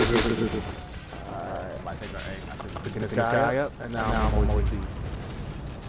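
Swords clash and clang amid a noisy battle.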